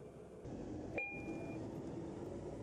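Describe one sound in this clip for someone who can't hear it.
A bus stop bell chimes once.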